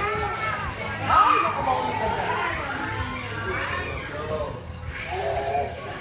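Young children chatter and squeal nearby.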